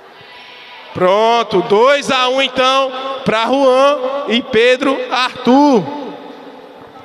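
A young man shouts loudly with animation in a large echoing hall.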